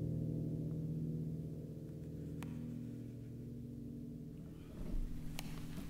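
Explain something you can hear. A piano plays slow, soft notes.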